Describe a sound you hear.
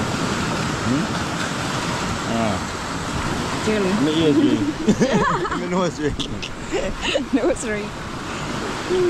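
A man speaks calmly and cheerfully close by.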